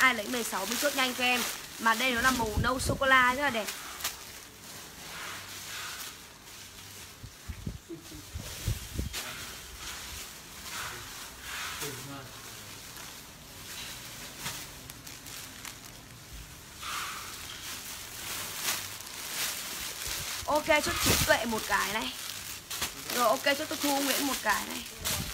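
A young woman talks with animation close to the microphone.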